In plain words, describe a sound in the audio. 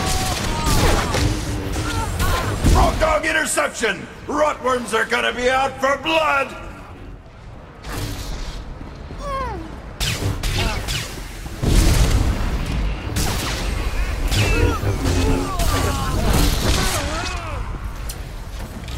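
Energy blasts and electric zaps crackle in a fight.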